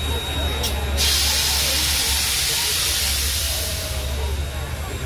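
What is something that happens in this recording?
A steam locomotive lets out a loud hiss of steam.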